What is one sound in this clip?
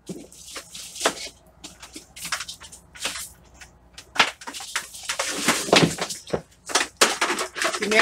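Hands rustle and scrape things close by.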